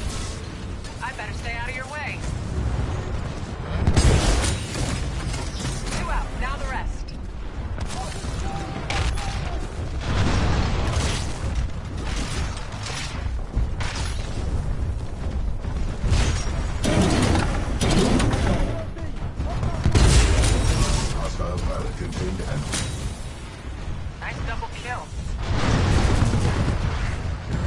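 Heavy gunfire and explosions boom and crackle throughout.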